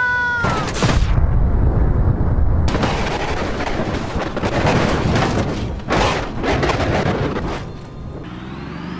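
A truck crashes loudly into a concrete block.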